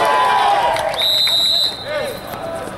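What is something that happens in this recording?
A referee's whistle blows once in a short steady blast.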